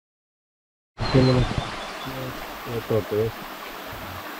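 A man speaks briefly up close.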